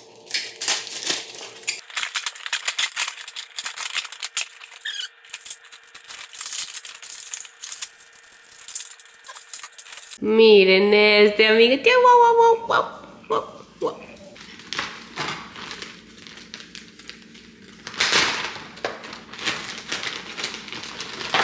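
Plastic bags crinkle and rustle in handling.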